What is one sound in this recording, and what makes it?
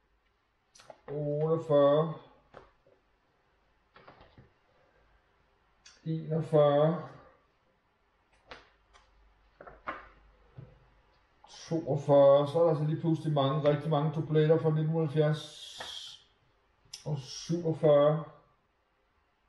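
A middle-aged man reads aloud nearby in short bursts.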